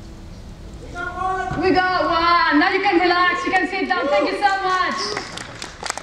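A young woman sings out loudly in a large echoing hall.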